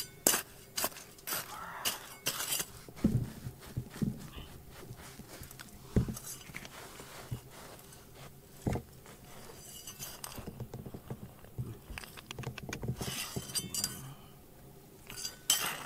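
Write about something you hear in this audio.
Loose dirt and pebbles trickle and patter down.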